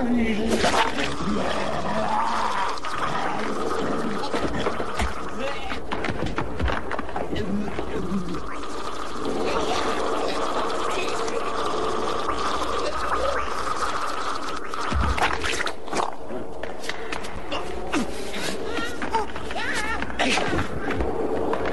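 Bodies thud and crash in a violent struggle.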